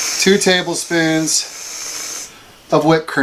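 A can of whipped cream sprays with a short hiss.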